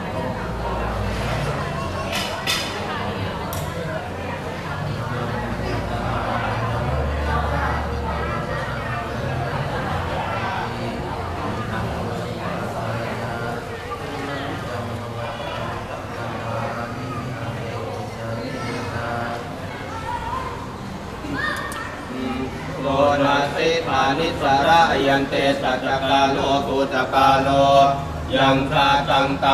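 Several men talk in low voices nearby.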